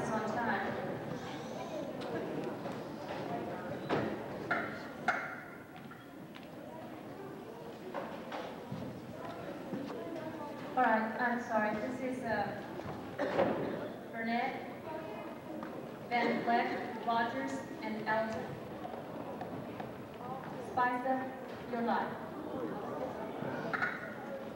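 An audience chatters and murmurs in a large echoing hall.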